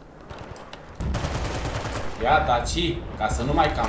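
A rifle fires a single loud shot indoors.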